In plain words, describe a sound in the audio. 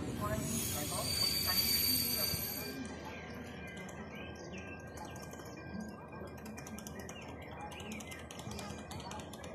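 Passenger coaches roll past on rails close below.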